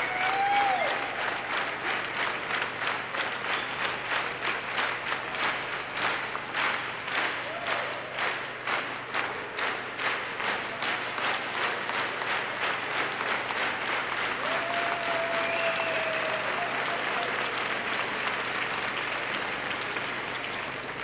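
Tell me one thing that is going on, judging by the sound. A large crowd claps in a steady rhythm.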